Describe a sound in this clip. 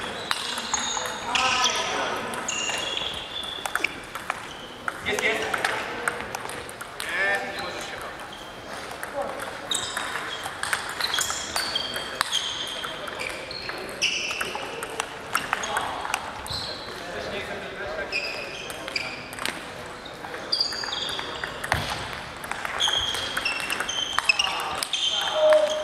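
Sports shoes squeak sharply on the floor.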